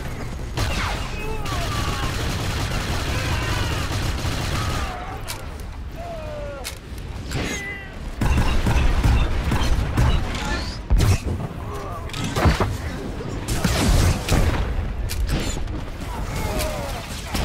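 Blasts and impacts of game combat ring out repeatedly.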